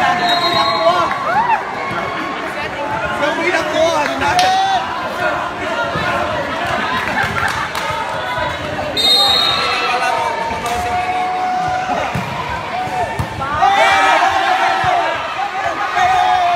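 A crowd of young spectators chatters and cheers.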